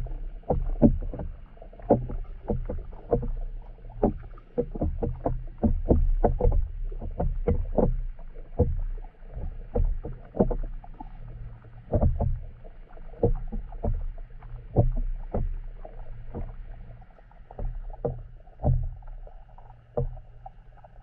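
Water swishes and knocks dully, heard muffled from underwater.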